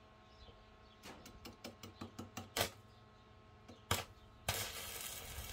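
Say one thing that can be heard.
A welding rod taps and scratches against metal as the arc is struck.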